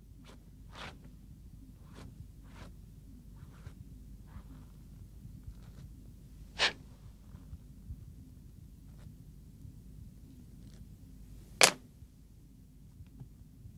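Cloth rustles softly as a woman handles her blouse.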